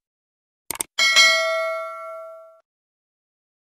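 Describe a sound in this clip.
A small bell chimes brightly and rings out.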